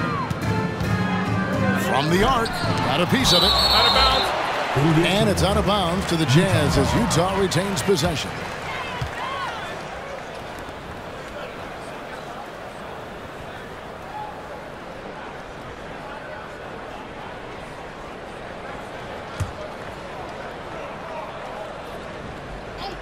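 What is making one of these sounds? A large crowd roars in an echoing arena.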